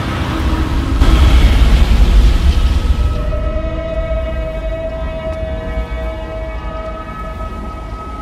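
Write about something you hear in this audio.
A swirling magical portal roars with a deep, rushing rumble.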